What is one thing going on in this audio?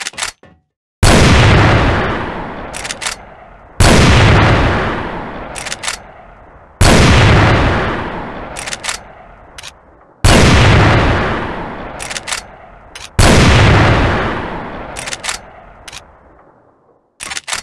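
A heavy gun fires single booming shots that echo and fade.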